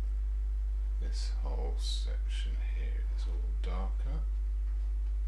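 An older man mumbles briefly to himself.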